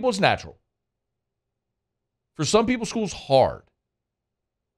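A man speaks close into a microphone in short bursts.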